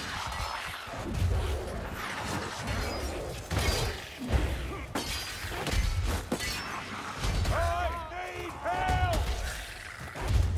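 Creatures squeal and shriek.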